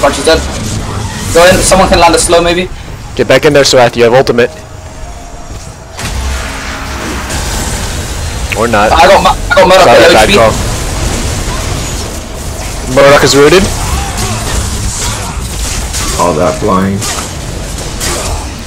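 Magic energy blasts whoosh and crackle.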